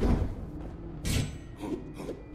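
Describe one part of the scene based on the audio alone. A magical blast bursts with a sudden whoosh.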